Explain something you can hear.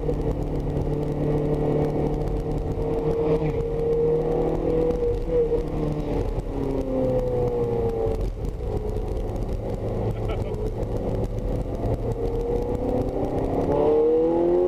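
A sports car engine roars loudly from inside the cabin, its pitch rising and falling as the car speeds up and shifts gears.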